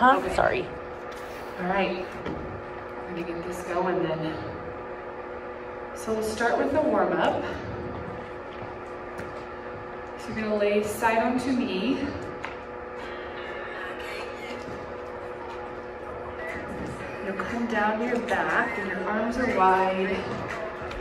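A young woman talks calmly to the listener in an echoing room.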